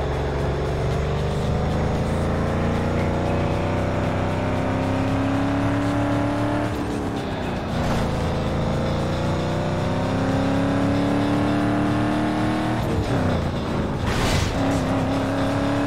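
A racing car engine roars, rising in pitch and dropping sharply at each gear change.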